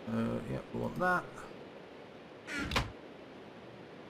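A wooden chest thumps shut.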